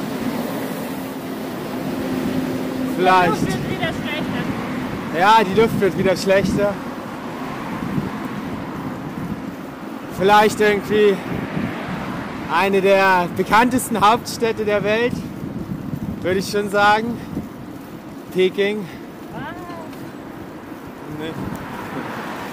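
Wind rushes past the microphone outdoors.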